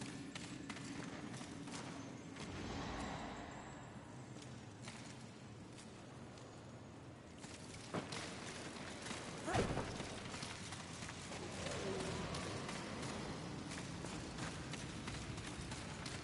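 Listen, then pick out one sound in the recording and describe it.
Footsteps patter on grass and stone.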